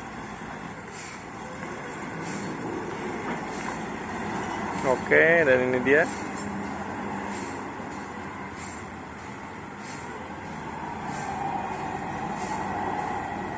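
A diesel forklift engine runs at a distance.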